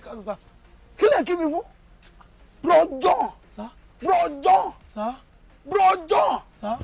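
A young man shouts in exasperation close by.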